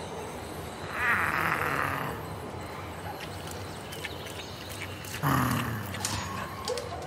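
A dog crunches dry food from a bowl.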